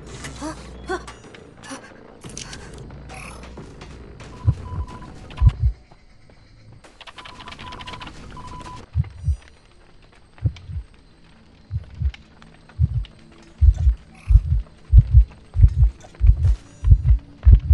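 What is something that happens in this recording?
A fire crackles.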